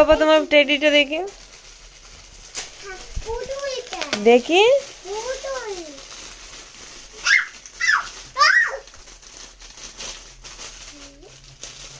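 Shiny foil wrapping crinkles and rustles in hands.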